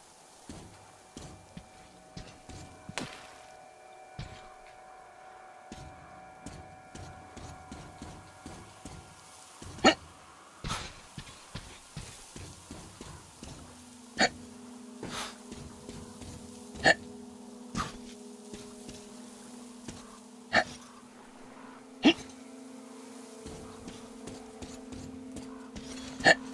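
Footsteps thud on a narrow beam over water.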